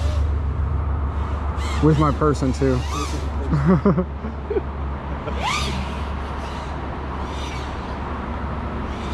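A small drone's motors whine, rising and falling in pitch as it swoops.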